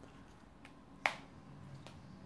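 A playing card taps softly onto a table.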